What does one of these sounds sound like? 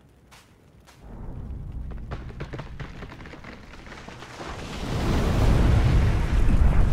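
A large fire roars and crackles.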